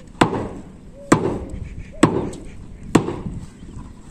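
A hammer strikes stones with sharp knocks.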